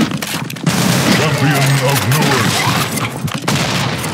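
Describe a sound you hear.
Gunshots crack nearby in quick bursts.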